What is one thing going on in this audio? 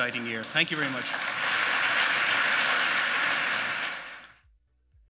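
An audience applauds loudly, then the applause fades.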